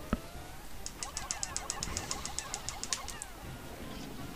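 Quick, light tapping sounds patter rapidly as game creatures attack.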